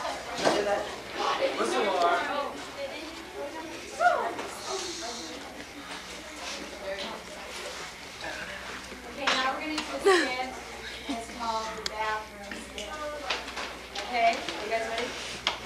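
Several young people talk and laugh nearby.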